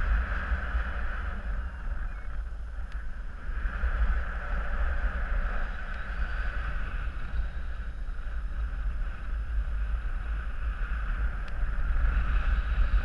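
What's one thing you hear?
Wind rushes loudly past, high in the open air.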